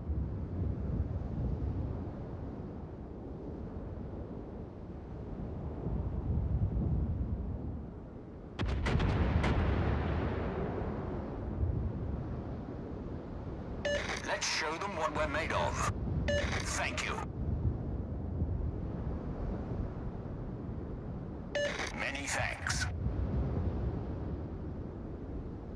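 A large ship's engine rumbles low and steady.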